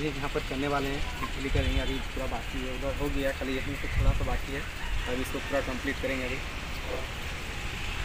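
A young man talks to the listener outdoors, close by.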